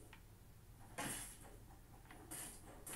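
Game sound effects of swinging and striking play through a television speaker.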